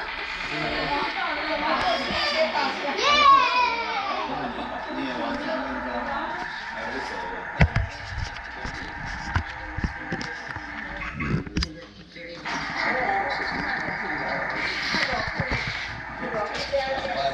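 Adults chat.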